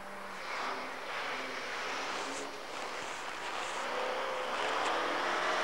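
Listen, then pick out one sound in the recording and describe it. Tyres throw up snow with a rushing hiss.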